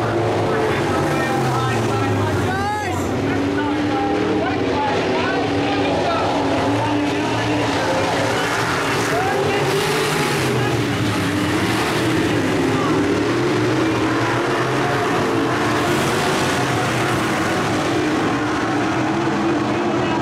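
Race car engines rise and fall in pitch as the cars pass and turn.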